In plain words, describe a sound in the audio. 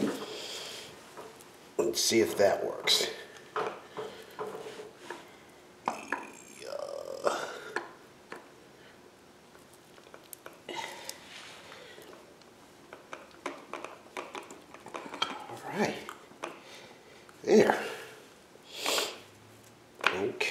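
Metal parts clink and scrape as they are fitted together by hand.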